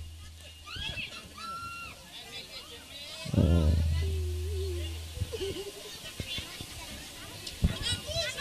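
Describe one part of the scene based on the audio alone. A man sings loudly into a microphone through loudspeakers outdoors.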